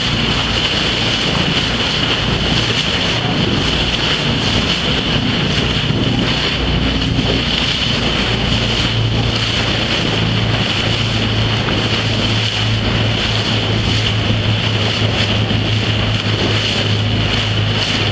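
Wind blows hard across the microphone.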